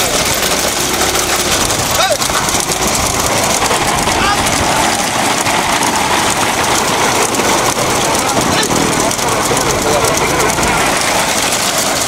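Cart wheels rumble on the road.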